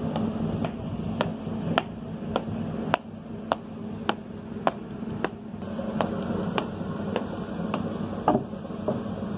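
Boots stamp on pavement in a steady marching rhythm.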